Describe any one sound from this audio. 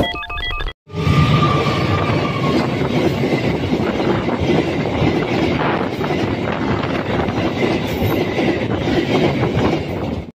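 A freight train rumbles past close by, its wheels clattering on the rails.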